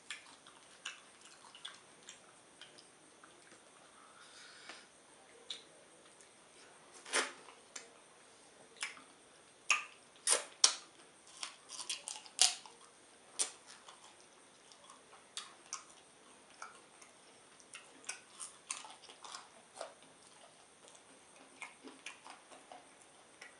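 A man chews and smacks wet food close to a microphone.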